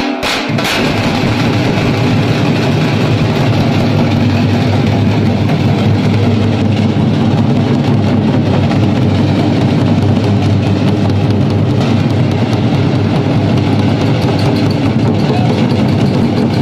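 Large steel-shelled drums boom in a heavy beat.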